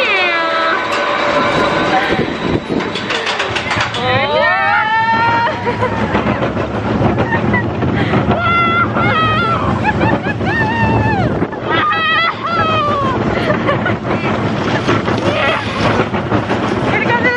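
A roller coaster rattles and clatters along its track.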